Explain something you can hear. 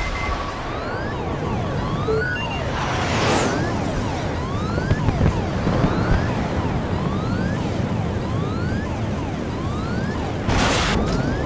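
Flares pop and hiss in quick bursts.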